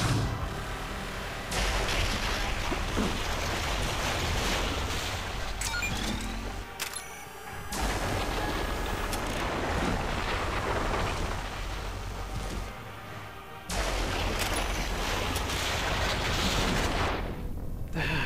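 Laser weapons fire and crackle in a loud battle.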